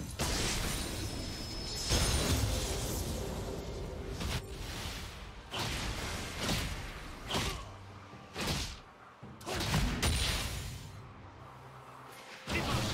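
Swift magical whooshes sweep past again and again.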